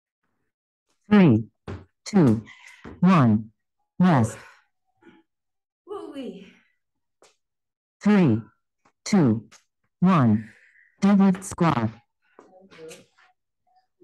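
A woman calls out energetically over an online call.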